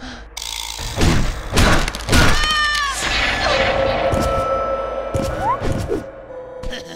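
Punches and kicks land with sharp, heavy thuds.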